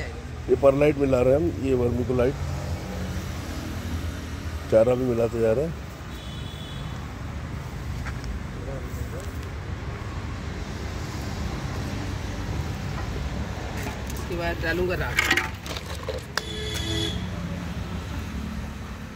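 Hands rub and scoop dry sawdust with a soft rustle.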